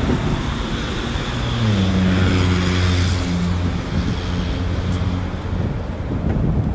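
A van's engine drones past on a nearby road.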